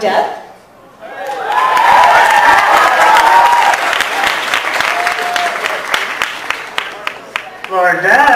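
An audience cheers and screams loudly.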